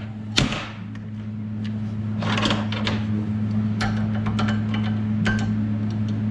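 Small metal parts click and clink.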